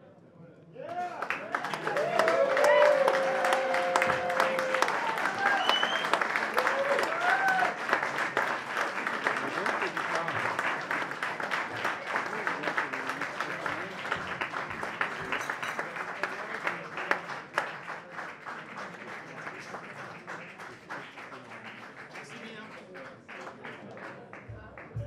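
A drummer plays fast clattering strokes on cymbals and drums, then fades.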